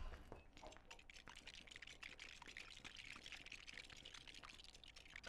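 Objects smash apart with rapid clinking and clattering.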